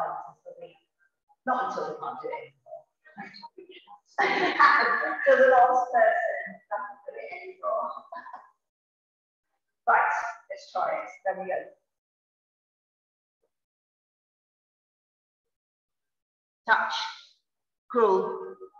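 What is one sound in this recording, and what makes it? A woman speaks calmly, giving instructions through a microphone.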